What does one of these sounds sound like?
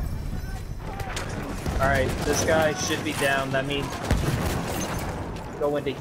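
A machine gun is reloaded with metallic clicks and clatter.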